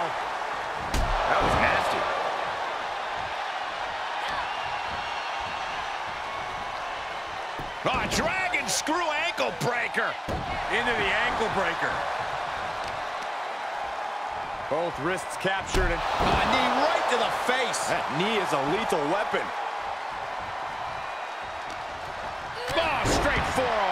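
Bodies slam heavily onto a wrestling mat with loud thuds.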